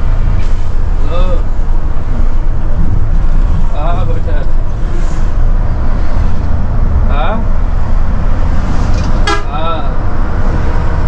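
A bus horn sounds in short musical bursts.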